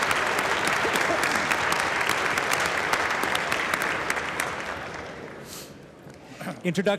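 A large crowd applauds in a big echoing hall, then the applause fades away.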